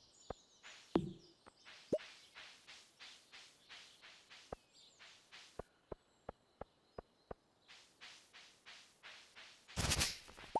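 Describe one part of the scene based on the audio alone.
Quick footsteps tap steadily along a path.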